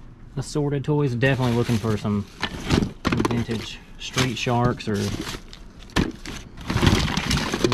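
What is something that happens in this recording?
Plastic toys clatter and rustle as hands rummage through a cardboard box.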